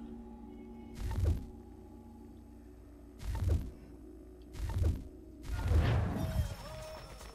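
Short whooshing chimes sound one after another.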